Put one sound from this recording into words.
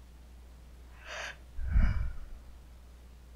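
A young woman gasps and exclaims in surprise.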